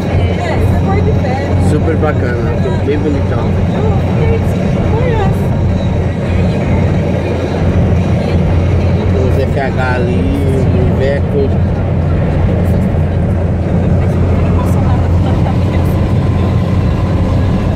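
Tyres roar steadily on a motorway.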